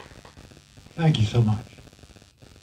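An elderly man speaks briefly into a microphone.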